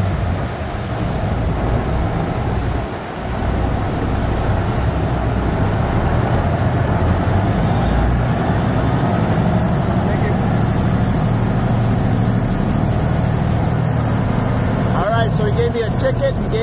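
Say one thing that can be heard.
A boat engine rumbles steadily and loudly.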